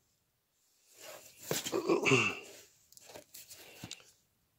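Comic books in plastic sleeves rustle as a hand flips through a box of them.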